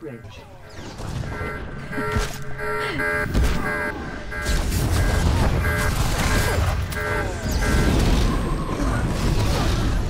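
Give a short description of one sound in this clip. Explosions and energy blasts boom and crackle during a fight.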